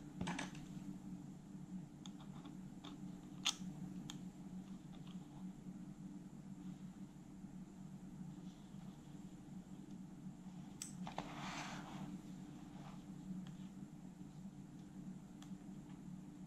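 A small screwdriver clicks and taps against a cassette player's metal and plastic parts.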